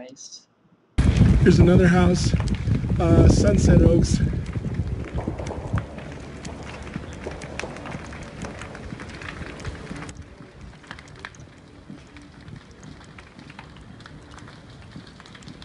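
Strong wind blows.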